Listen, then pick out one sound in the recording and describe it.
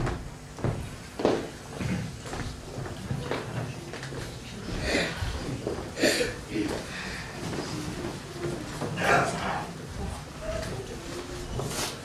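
Footsteps tap across a wooden floor indoors.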